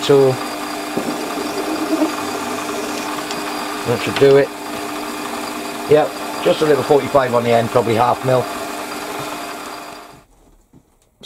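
A lathe motor hums steadily as it spins.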